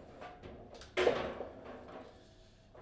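A table football ball slams into a goal.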